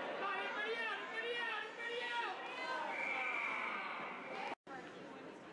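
Young players shout to each other across an echoing ice rink.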